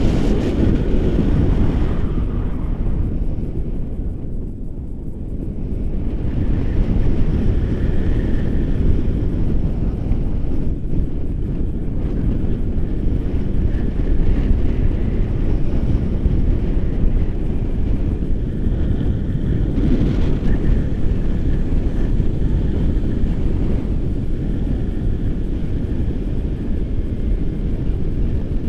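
Strong wind roars and buffets against a microphone throughout.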